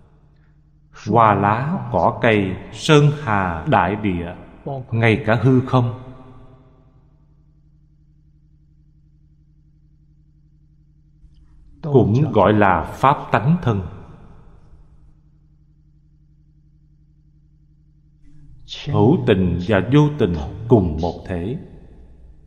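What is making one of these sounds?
An elderly man speaks calmly and slowly into a close microphone, with long pauses.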